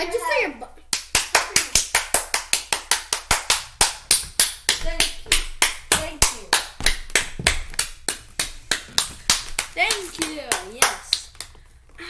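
A boy claps his hands quickly and steadily, close by.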